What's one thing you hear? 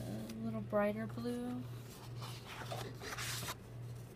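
Paper rustles softly as a hand handles it.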